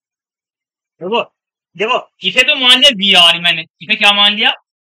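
A man speaks calmly into a close microphone, as if lecturing.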